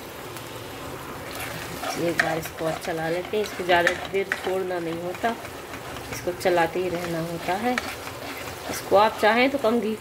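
A wooden spatula scrapes and stirs in a frying pan.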